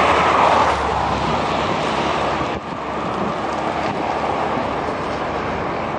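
A motorcycle engine rumbles as it approaches.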